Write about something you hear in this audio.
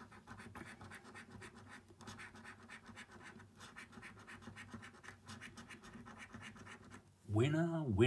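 A coin scratches rapidly across a scratch card.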